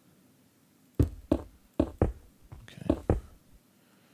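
Stone blocks are placed with short, dull knocks.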